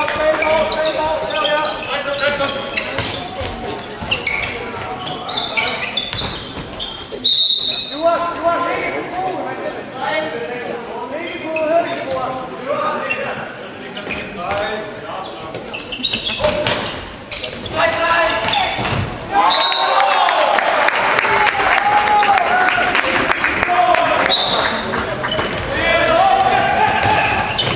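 Young men shout to each other across an echoing sports hall.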